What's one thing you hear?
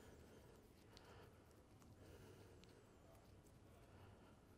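A cloth rubs and wipes against a small hard object.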